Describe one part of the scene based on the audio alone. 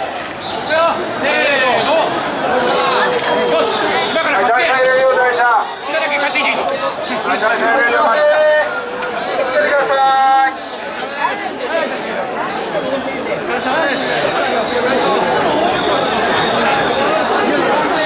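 A large crowd of men chants and shouts rhythmically outdoors.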